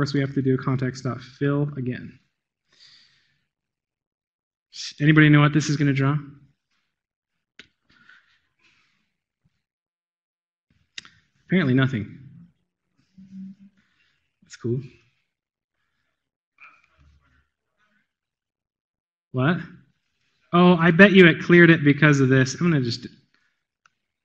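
A man speaks calmly into a microphone, in short bursts with pauses.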